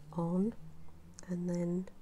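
A rubber stamp taps onto a paper card.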